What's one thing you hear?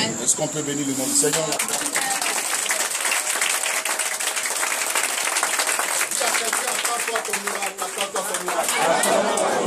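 A crowd sings along loudly.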